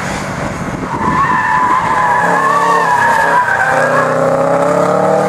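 Tyres squeal on tarmac as a car turns sharply.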